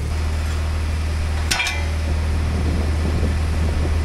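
A heavy steel beam clanks down onto gravel.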